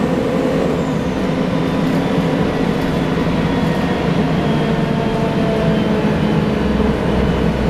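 A bus rattles over the road.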